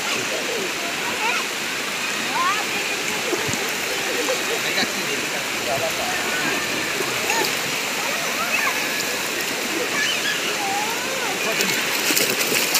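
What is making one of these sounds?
Children shout and chatter nearby.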